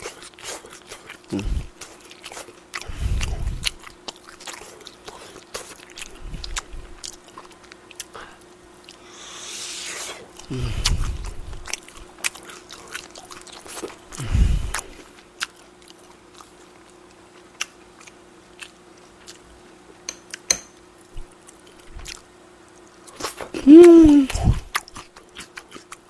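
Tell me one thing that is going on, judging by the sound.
A young man chews and smacks his lips loudly close to a microphone.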